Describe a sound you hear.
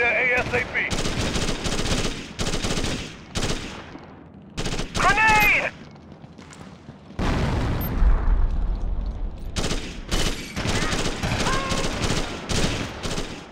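A rifle fires in rapid bursts, with loud cracks close by.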